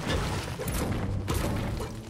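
A pickaxe strikes a brick wall.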